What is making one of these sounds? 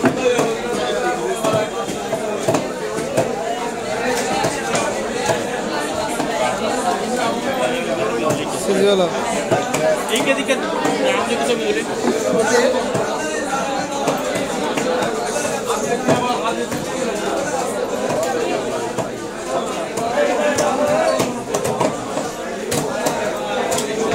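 A crowd of people murmurs and chatters in the background.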